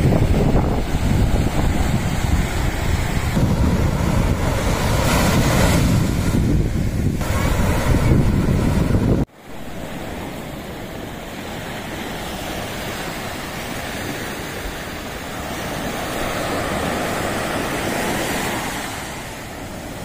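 Waves wash onto a beach.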